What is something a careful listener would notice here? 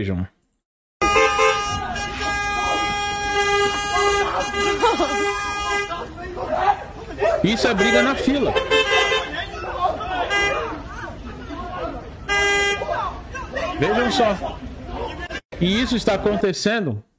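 Men shout during a street fight, heard through a loudspeaker.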